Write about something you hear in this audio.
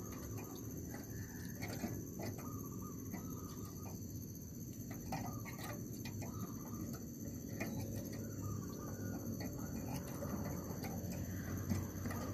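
A dove coos softly and repeatedly close by.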